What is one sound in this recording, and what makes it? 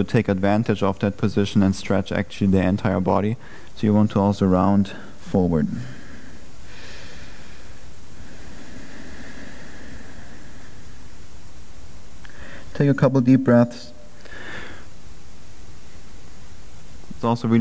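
A man speaks calmly and clearly, close to a microphone, with pauses.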